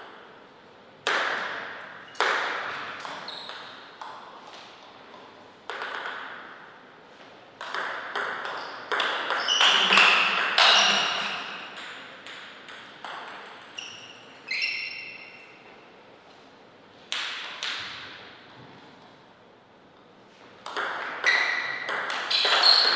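A ping-pong ball clicks sharply off paddles and a table, echoing in a large hall.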